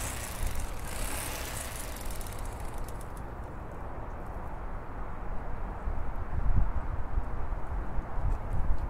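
Wind blows against a microphone outdoors.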